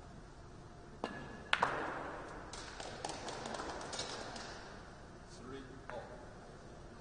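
Pool balls crack apart and clatter across a table in a hard break.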